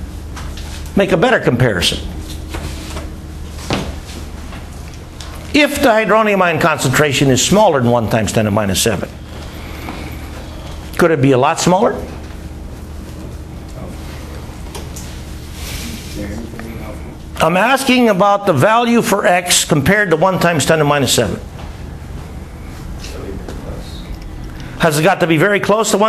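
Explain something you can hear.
An elderly man lectures with animation into a microphone, in bursts with pauses.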